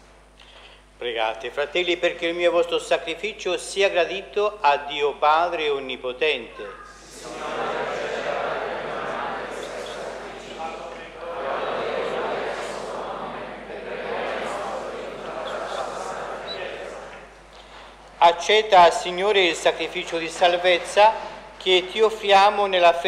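A man chants through a loudspeaker in a large echoing hall.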